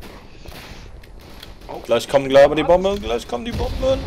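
A rifle bolt clicks as a cartridge is loaded.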